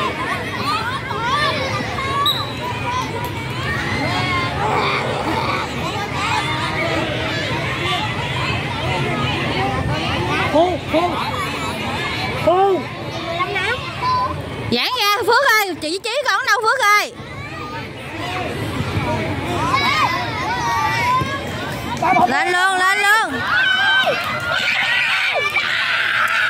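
Young children shout and call out outdoors.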